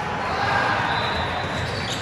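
A volleyball is struck hard.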